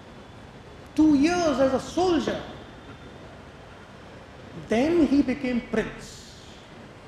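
A man speaks through a microphone and loudspeakers in short, emphatic bursts.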